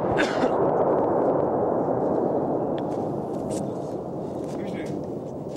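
Wind blows steadily outdoors and slowly eases.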